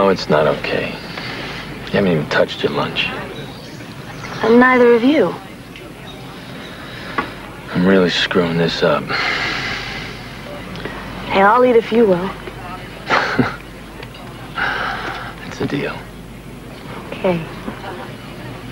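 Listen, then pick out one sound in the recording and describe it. A man talks calmly at close range.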